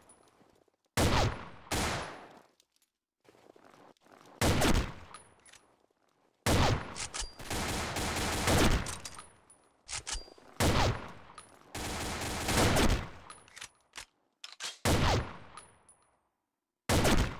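A sniper rifle fires loud single shots, each ringing out and fading.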